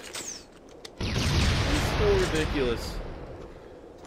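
A burst of automatic gunfire rattles loudly.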